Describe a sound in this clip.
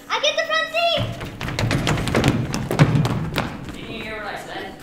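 Footsteps patter and thump across a wooden stage.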